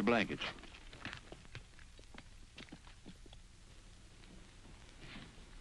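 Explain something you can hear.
Boots step across a wooden floor.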